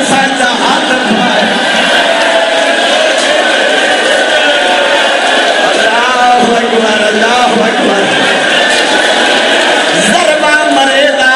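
A man speaks forcefully and passionately into a microphone, heard through loudspeakers.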